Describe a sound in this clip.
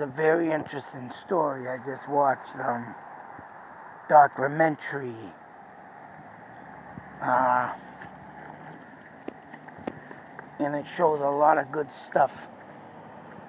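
A man speaks casually and close up through a phone microphone, in short bursts.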